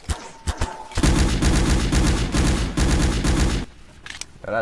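A machine gun fires a long, rapid burst close by.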